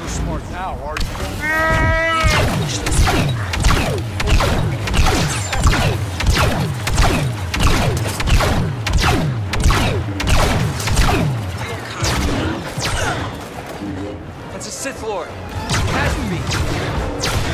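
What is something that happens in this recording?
Blaster guns fire in rapid bursts of sharp zaps.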